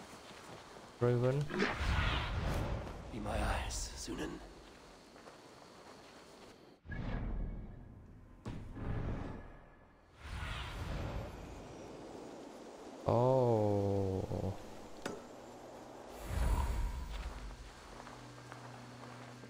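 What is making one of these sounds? A young man talks calmly into a microphone.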